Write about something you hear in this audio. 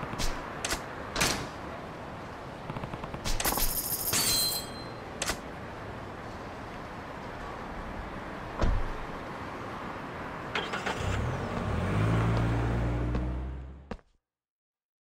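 Traffic hums along a busy city street.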